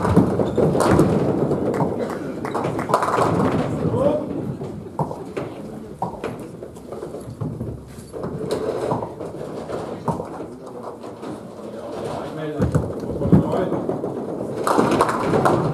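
A bowling ball rolls down a lane with a low rumble.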